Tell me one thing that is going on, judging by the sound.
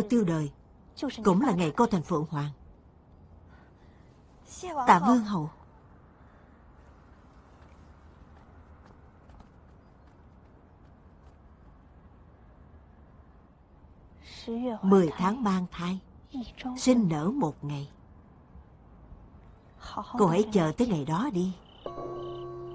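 Another young woman speaks slowly and coldly, close by.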